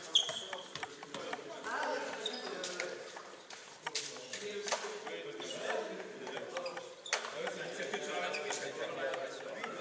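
Sneakers squeak on a hard floor.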